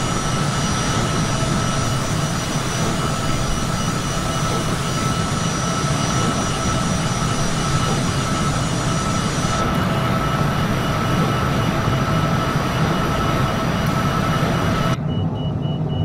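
Jet engines roar loudly and steadily close by.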